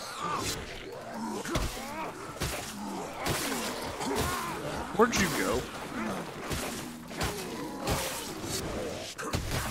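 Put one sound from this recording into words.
A blade slashes and strikes flesh with heavy thuds, again and again.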